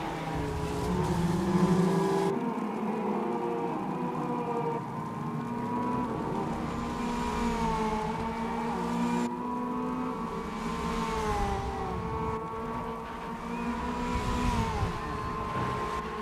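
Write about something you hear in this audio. Tyres screech on a wet track.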